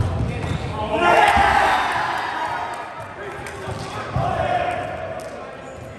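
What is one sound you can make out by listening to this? Young men shout and call out across an echoing hall.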